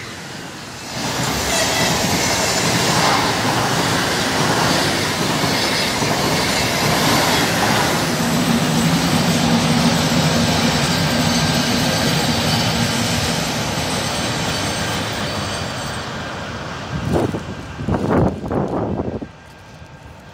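A train rushes past close by with a loud rumbling roar that fades away.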